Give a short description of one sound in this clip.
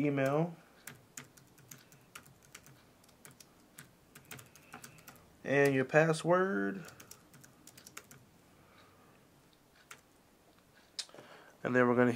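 Fingers tap lightly on a touchscreen keyboard, with soft key clicks.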